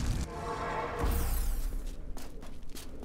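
A magical portal whooshes and hums.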